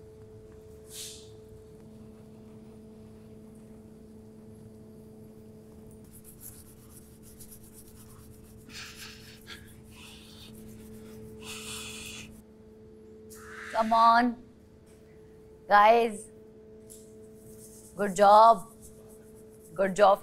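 Hands rub and scrub against blocks of ice.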